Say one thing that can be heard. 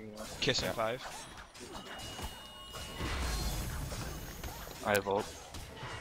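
Game sound effects of spells and blows burst and whoosh.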